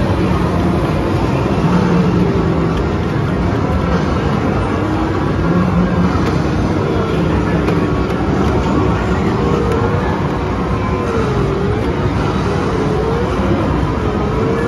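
A busy arcade hums with many machines playing at once.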